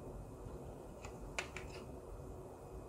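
Plastic chargers click and tap against each other in hands.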